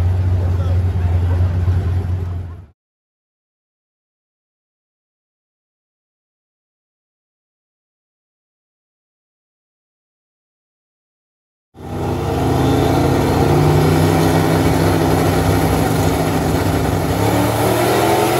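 Racing car engines roar loudly and rev hard.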